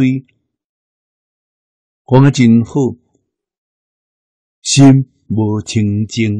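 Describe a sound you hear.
An elderly man speaks calmly into a close microphone, with pauses.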